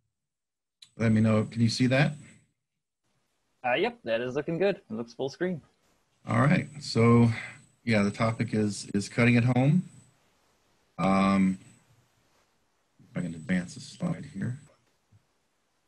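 A man speaks calmly through an online call microphone.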